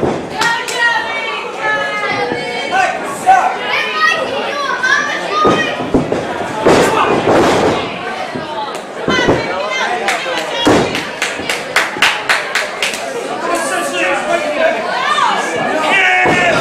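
A crowd cheers and chatters in an echoing hall.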